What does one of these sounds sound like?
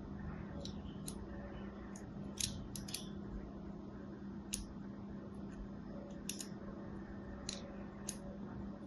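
A knife blade scrapes and clicks sharply against a bar of soap.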